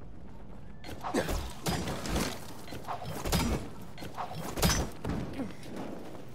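Hands thud against ledges while climbing a building.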